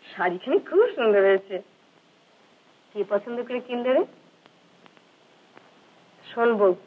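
A woman speaks warmly and gently, close by.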